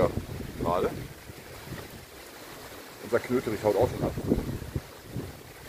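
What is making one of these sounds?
Strong wind gusts through trees and rustles the leaves.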